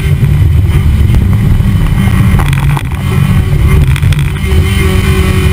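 Wind buffets loudly against the car.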